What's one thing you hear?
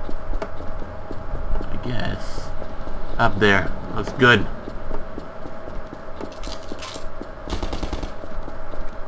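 A rifle fires loud, rapid shots.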